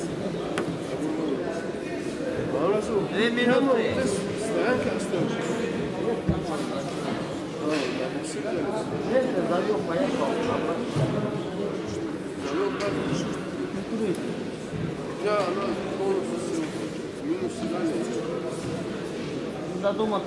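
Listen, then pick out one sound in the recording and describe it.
Men talk in a murmur, heard in a large echoing hall.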